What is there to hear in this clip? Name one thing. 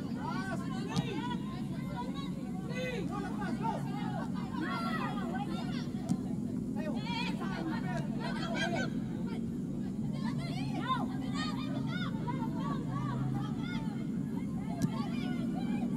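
A ball is kicked with a dull thud on an outdoor pitch.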